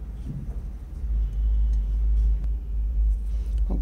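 A notebook page is turned with a soft paper rustle.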